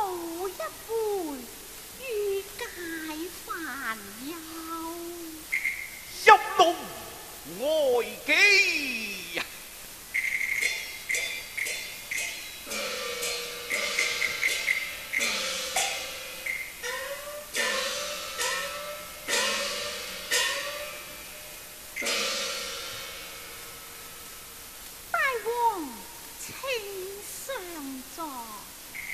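A woman sings in a high, gliding voice.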